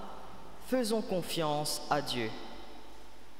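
A young man reads aloud through a microphone.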